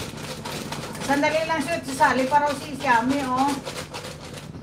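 A middle-aged woman speaks close to a microphone with animation.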